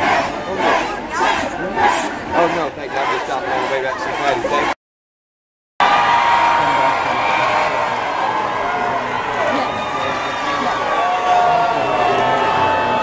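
A large outdoor crowd cheers and shouts.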